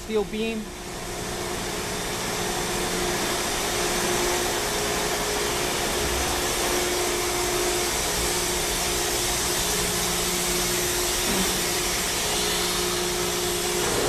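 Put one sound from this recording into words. Machinery hums and whirs steadily.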